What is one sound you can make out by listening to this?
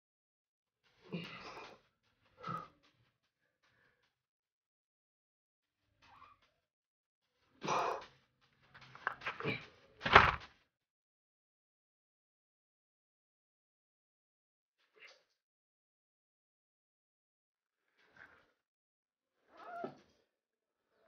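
A young man grunts and breathes hard with effort.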